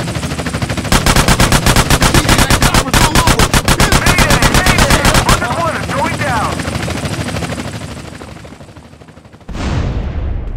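A helicopter's rotor whirs overhead.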